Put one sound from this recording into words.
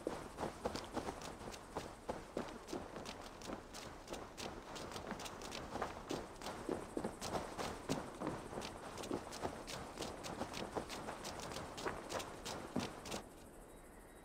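Footsteps crunch quickly over the ground.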